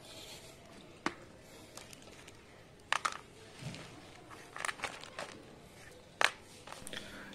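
Objects are set down on a hard surface with light knocks and clatters.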